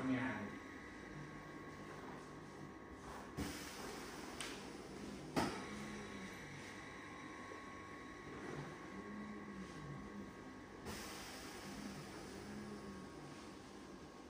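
A massage chair's motor hums softly.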